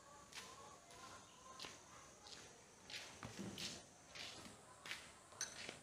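Footsteps crunch on gravelly dirt.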